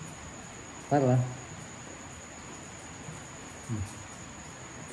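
A man makes short, soft cooing sounds close by.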